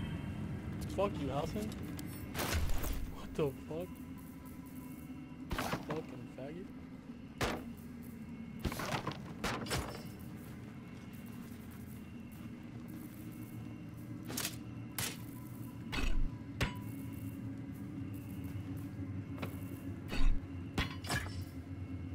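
Soft interface clicks and chimes sound as menu items are picked.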